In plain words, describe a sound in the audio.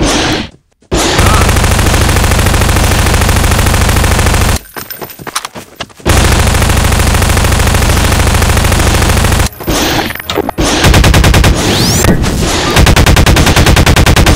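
A gun fires in rapid bursts, loud and close.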